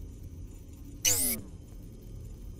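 A falling electronic whoosh sounds.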